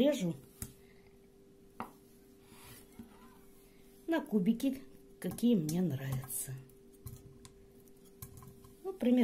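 A knife taps on a wooden board as it cuts through soft food.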